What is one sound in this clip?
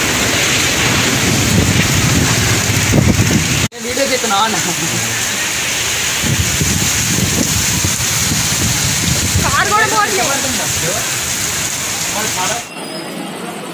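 Heavy rain and hail pour down hard in gusty wind.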